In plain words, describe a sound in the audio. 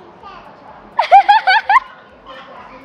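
A young girl laughs brightly.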